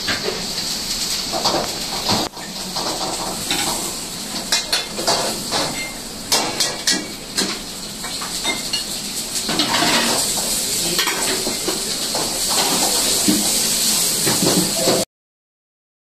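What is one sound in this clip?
Boiling water bubbles in a large pot.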